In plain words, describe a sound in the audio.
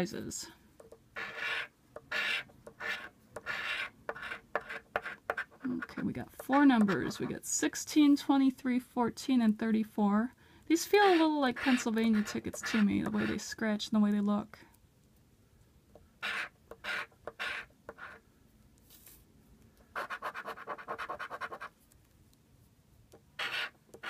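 A coin scratches and scrapes across a card in short strokes.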